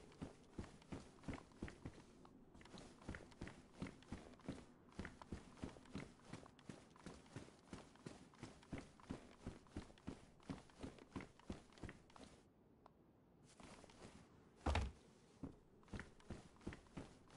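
Footsteps thud steadily on hollow wooden boards.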